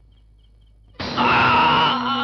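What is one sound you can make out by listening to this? A man sings out loudly with emotion.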